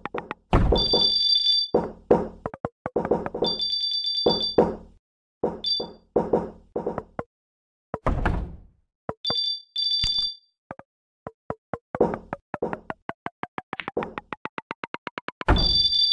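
Bright game chimes ring out in short bursts.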